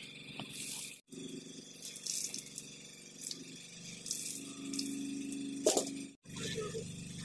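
Water splashes and drips from wet cloth into a metal pot.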